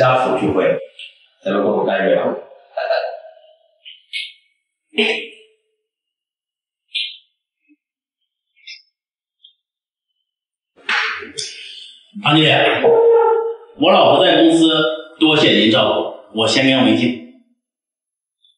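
A man speaks warmly and with animation close by.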